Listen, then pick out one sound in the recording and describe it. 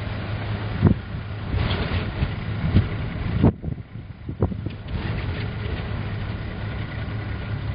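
Strong gusting wind buffets and rumbles against the microphone.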